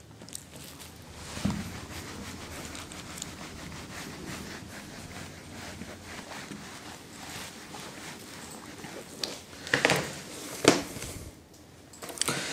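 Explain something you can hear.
A man talks calmly, close to a microphone.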